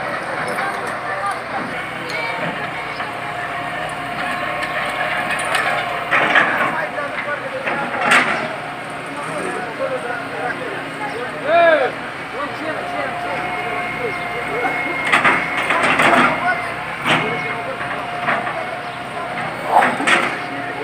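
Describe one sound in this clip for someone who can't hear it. An excavator engine rumbles and whines steadily.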